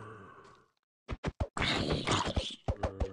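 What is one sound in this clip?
A sword strikes a zombie with dull thuds.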